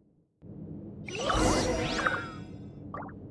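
A loud whoosh sweeps past.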